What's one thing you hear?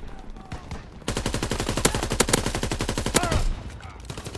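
A gun fires in a rapid, loud burst.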